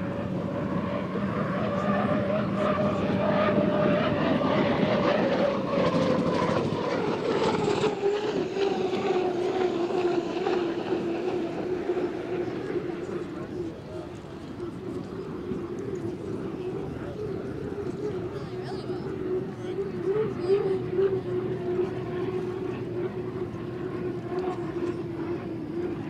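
Spray hisses off the water behind a racing boat.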